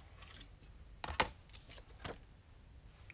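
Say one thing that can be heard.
A stiff plastic sheet is laid down onto paper with a soft slap.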